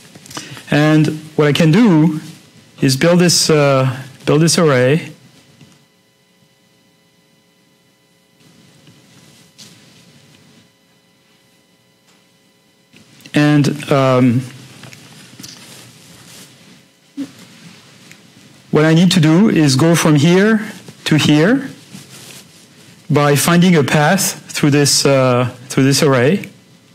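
A man lectures calmly through a microphone, with pauses.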